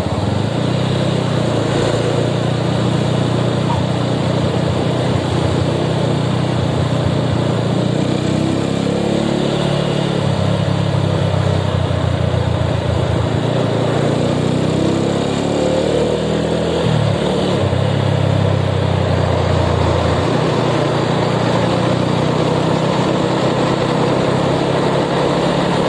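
A motorcycle engine rumbles steadily up close, revving up and down.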